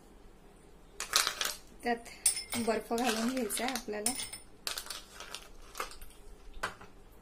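Ice cubes clink as they drop into a glass.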